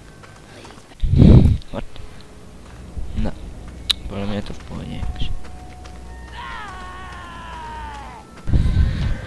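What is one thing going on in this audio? A young man speaks close to a headset microphone.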